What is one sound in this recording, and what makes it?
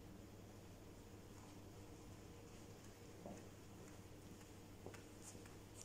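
Footsteps shuffle softly on a carpeted floor.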